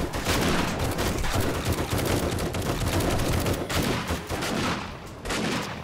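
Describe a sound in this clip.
Gunshots fire rapidly from a rifle.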